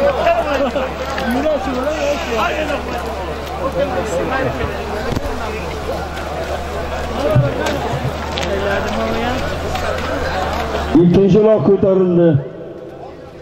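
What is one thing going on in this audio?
A large crowd of men shouts and calls outdoors.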